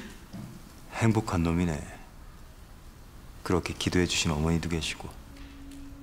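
A young man speaks calmly and smugly, close by.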